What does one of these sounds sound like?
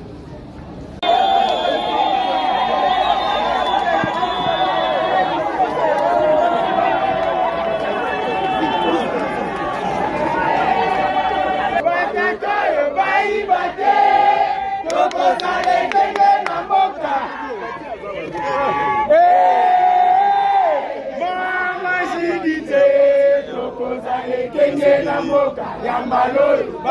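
A large crowd sings and cheers loudly outdoors.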